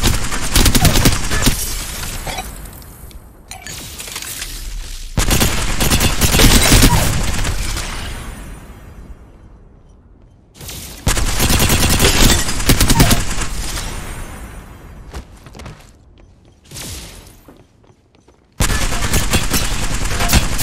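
Gunfire rattles in rapid bursts, each burst sharp and loud.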